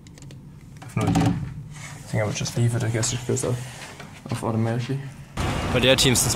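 A door handle rattles as a door opens.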